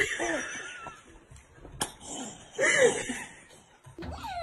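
A toddler laughs close by.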